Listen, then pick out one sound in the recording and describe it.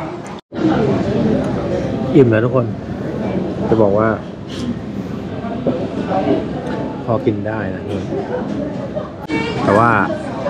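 A young man talks close by, calmly and with expression.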